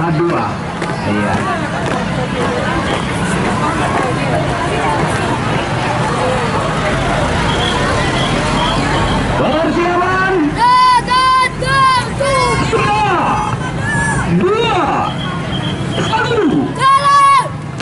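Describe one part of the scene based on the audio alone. A crowd of children chatters outdoors.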